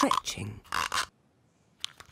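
A rubber goggle strap squeaks as it stretches.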